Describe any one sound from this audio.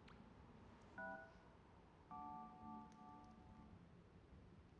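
A game character plays short musical tones on an instrument.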